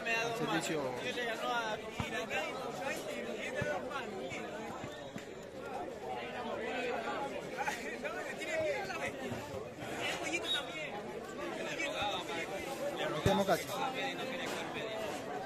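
A large outdoor crowd chatters and shouts loudly throughout.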